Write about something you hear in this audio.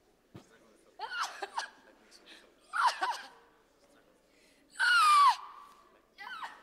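A woman cries out loudly in short, wailing bursts.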